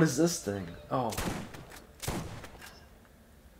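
Gunshots crack in a short burst.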